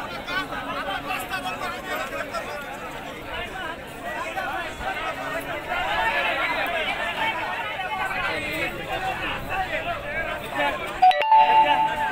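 A large crowd of men murmurs and chatters outdoors.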